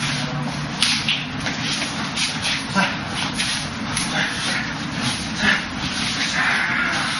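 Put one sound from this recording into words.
Hands slap and strike against arms and bodies in quick bursts.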